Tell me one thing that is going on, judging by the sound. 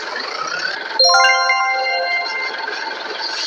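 A chime sounds when a car parks.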